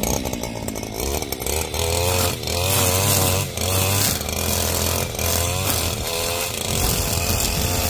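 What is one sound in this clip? A string trimmer engine whines and revs up and down close by.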